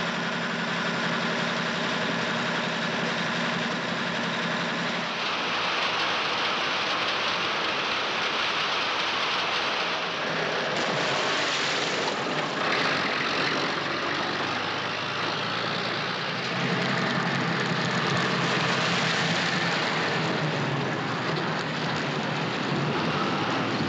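A truck engine rumbles as the truck drives by.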